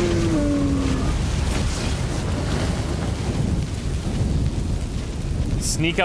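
A fire roars and crackles in a burst of flame.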